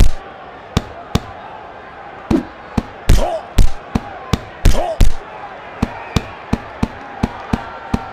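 Punches land with sharp thuds in quick succession.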